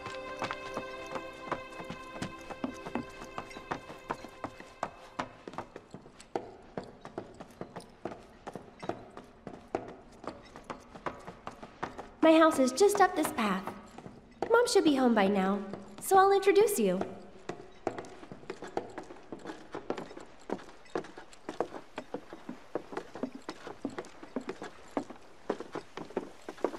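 Footsteps tap quickly on wooden boards and steps.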